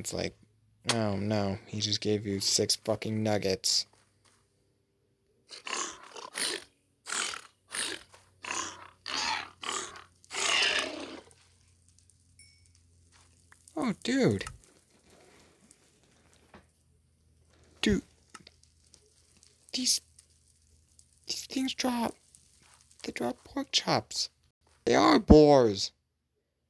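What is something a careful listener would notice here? A piglike creature grunts and snorts.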